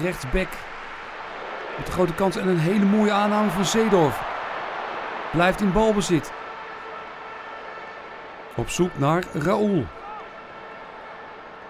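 A large crowd murmurs and cheers steadily in an open stadium.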